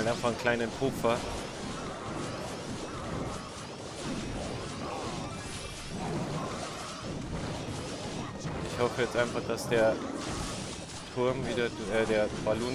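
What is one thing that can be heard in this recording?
Cartoonish battle sounds clash and crackle as small figures fight.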